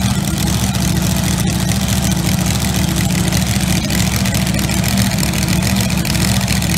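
A drag racing engine idles with a deep, loud, crackling rumble nearby, outdoors.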